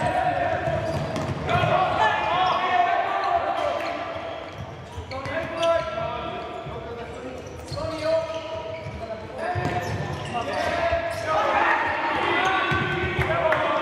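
A ball thuds as players kick it in a large echoing hall.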